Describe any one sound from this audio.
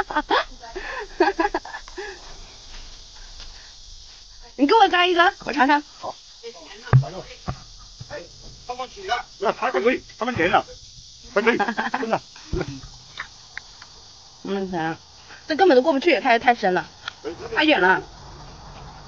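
A man talks casually close by, outdoors.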